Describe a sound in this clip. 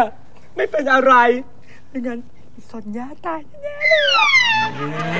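A young man speaks through sobs close by, his voice breaking and wailing.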